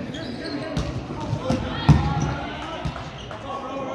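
A volleyball is struck with a sharp slap in a large echoing gym.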